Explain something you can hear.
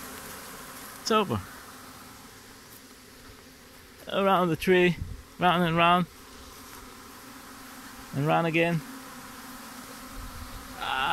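A swarm of bees buzzes steadily all around.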